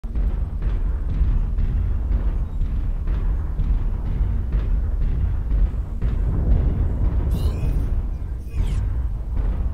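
A deep engine rumbles steadily.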